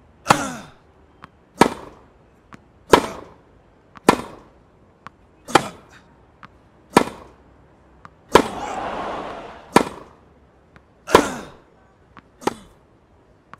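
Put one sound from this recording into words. A tennis ball is struck back and forth with sharp racket pops.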